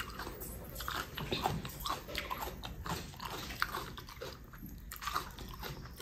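Fingers crumble and squish soft food close by.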